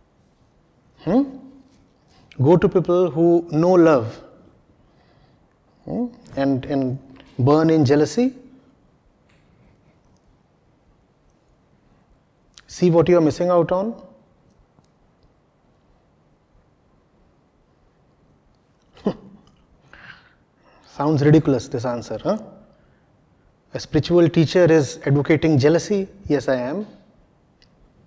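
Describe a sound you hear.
A middle-aged man speaks calmly into a close microphone, in short phrases with pauses.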